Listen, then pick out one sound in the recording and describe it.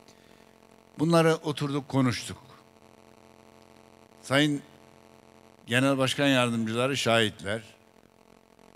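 An elderly man speaks with emphasis into a microphone over loudspeakers, with pauses between phrases.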